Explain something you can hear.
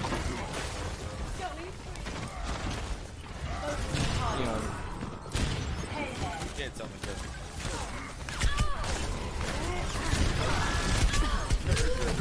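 Gunshots from a video game pop and crack.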